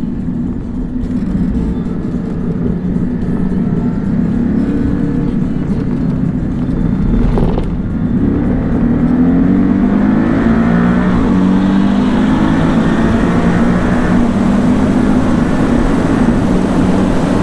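Tyres hum on the track surface.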